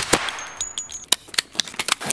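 A rifle's mechanism clicks.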